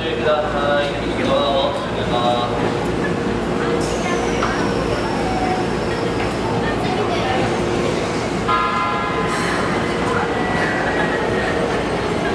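A train pulls slowly away, its wheels rolling on the rails.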